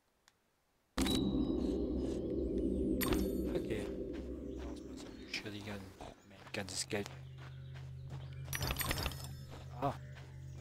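Light footsteps patter across soft ground.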